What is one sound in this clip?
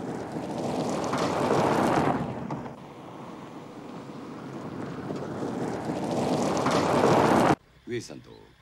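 A car engine rumbles as it passes close by.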